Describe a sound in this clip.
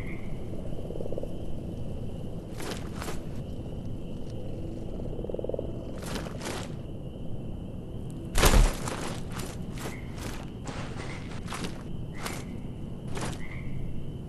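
Footsteps crunch through grass and dirt.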